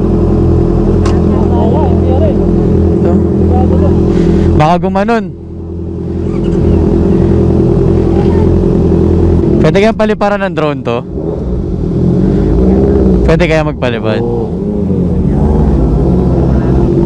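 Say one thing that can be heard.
Several motorcycle engines idle with a steady, deep rumble close by.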